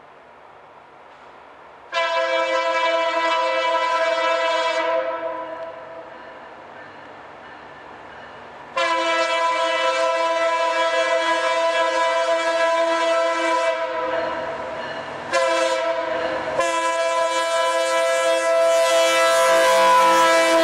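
A diesel locomotive engine rumbles as a train approaches.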